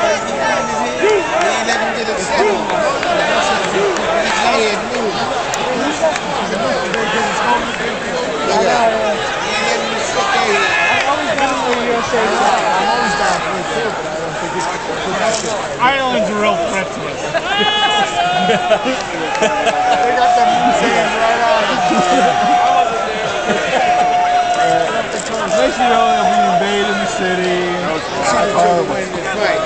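A large arena crowd murmurs and shouts.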